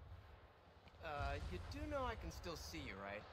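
A young man speaks wryly and casually.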